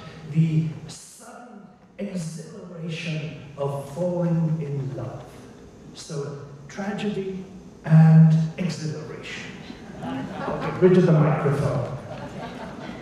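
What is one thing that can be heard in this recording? A middle-aged man speaks with animation through a microphone in a large echoing hall.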